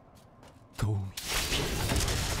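A crackling beam of magic zaps.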